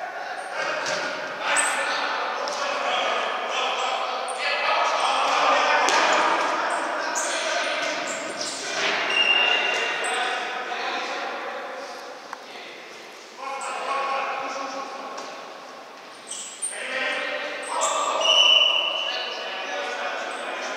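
Young men shout to each other in an echoing indoor hall.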